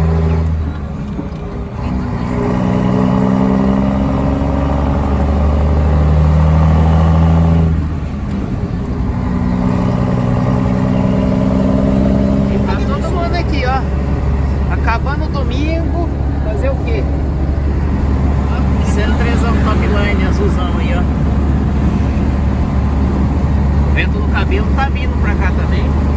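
A truck engine drones steadily from inside the cab, rising and falling in pitch.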